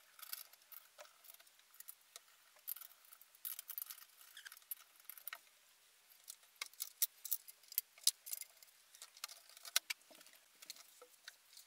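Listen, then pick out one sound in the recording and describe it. Small metal parts clink and click as they are handled.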